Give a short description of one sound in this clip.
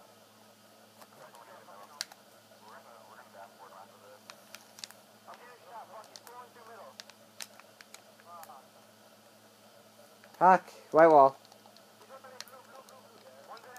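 Gunfire from a video game crackles through a television's speakers.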